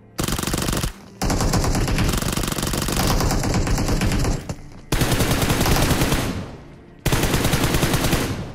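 Rapid bursts of automatic gunfire ring out close by.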